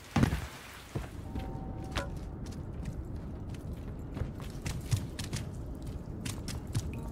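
Footsteps thud quickly on a hard floor indoors.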